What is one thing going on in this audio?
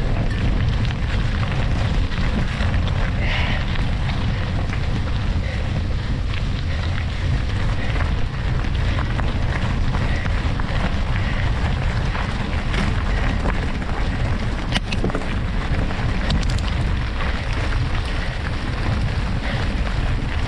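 Wind rushes steadily past while riding outdoors.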